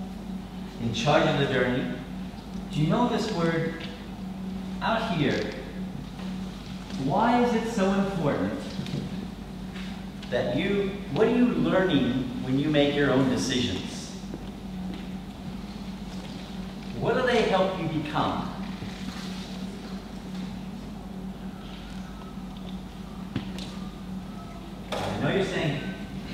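An elderly man lectures calmly in bursts, in a large echoing room.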